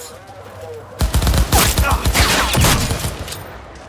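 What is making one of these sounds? Gunshots fire in rapid bursts at close range.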